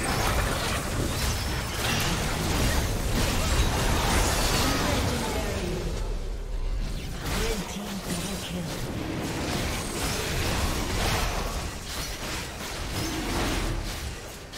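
Magic spells blast and crackle in a fierce battle.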